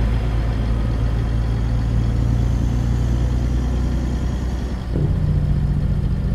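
A truck's diesel engine rumbles steadily and shifts pitch as it changes gear.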